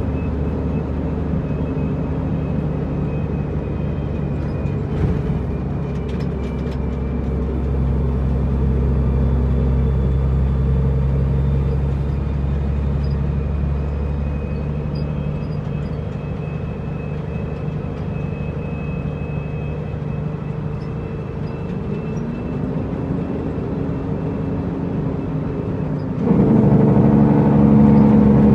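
A truck rattles and shakes over the road.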